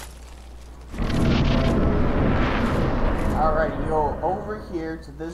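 A soft whooshing rush swells as a figure passes through a wall of fog.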